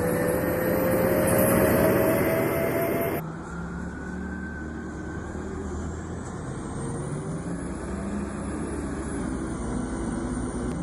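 A bus engine hums steadily as the bus turns and drives closer.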